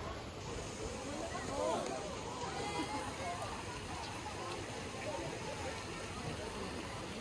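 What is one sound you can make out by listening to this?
A crowd of men and women chatter across the water, outdoors at a distance.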